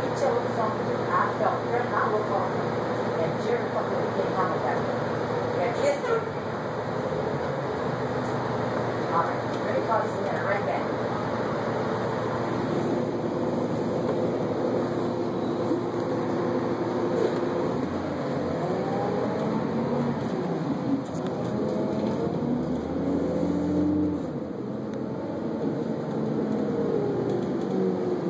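A bus rattles and creaks over the road.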